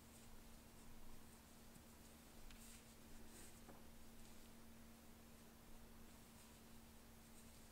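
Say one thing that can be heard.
Wooden knitting needles click and tap softly against each other.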